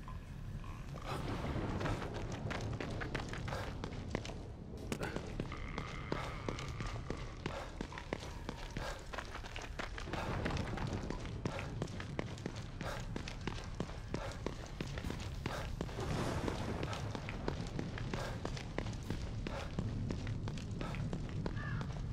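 Footsteps run quickly over wet pavement.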